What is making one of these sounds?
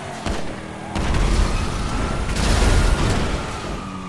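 A car crashes into another with a loud bang.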